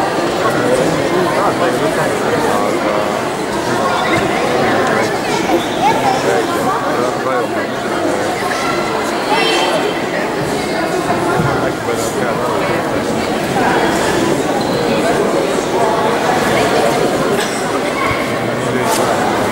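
A crowd of people chatters throughout a large echoing hall.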